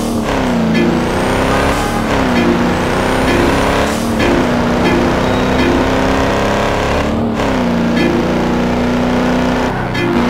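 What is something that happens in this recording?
Tyres roar on a road at speed.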